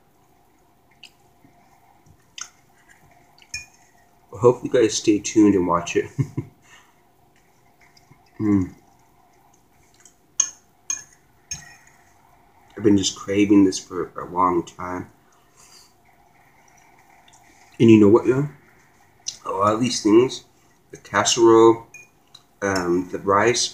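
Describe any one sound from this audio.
A fork clinks and scrapes on a plate.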